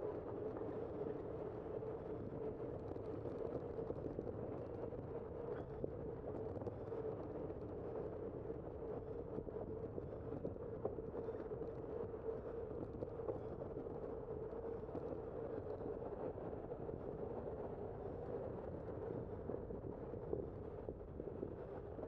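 A car engine hums steadily as the car drives along.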